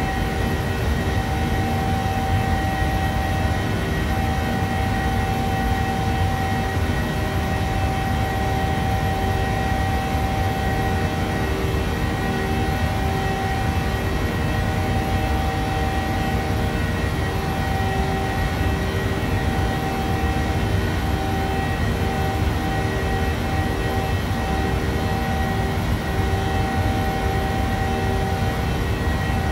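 A jet engine roars steadily with a constant whine, heard from inside the cabin.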